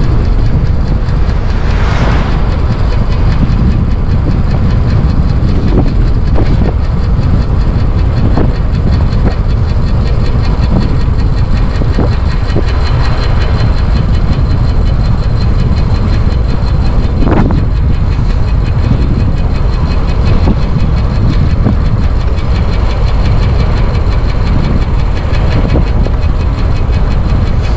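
Tyres hum on a rough road.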